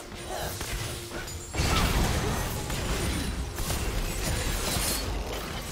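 Spell effects whoosh and burst in a game battle.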